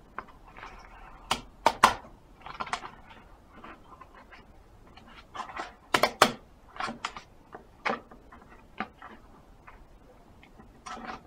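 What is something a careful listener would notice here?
Paper and cardboard crinkle and rustle sharply as a package is torn open and handled.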